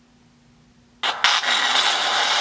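An electric crackling whoosh surges loudly.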